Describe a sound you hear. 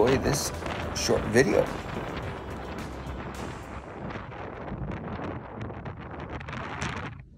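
Strong wind gusts and roars across an open mountainside.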